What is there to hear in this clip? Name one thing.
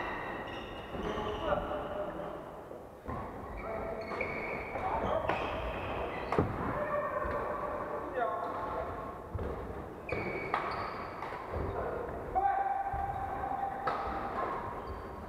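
Shoes squeak sharply on a wooden court.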